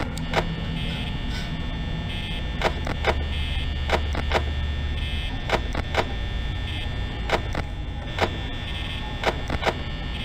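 A desk fan whirs steadily.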